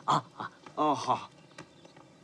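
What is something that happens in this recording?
A man speaks briefly with animation.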